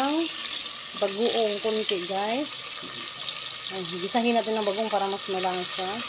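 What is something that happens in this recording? Liquid pours into a pot.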